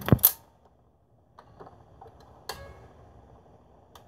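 A tone arm clicks and knocks as it is lifted off the record.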